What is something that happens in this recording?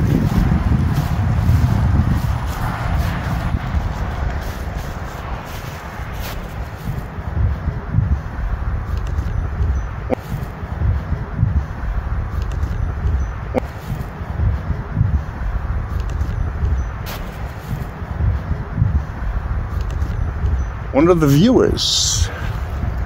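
An older man talks calmly close to a microphone.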